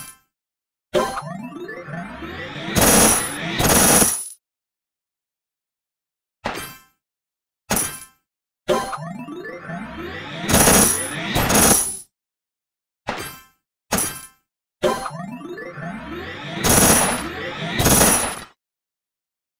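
Game power-ups burst with loud whooshing explosions and tinkling coins.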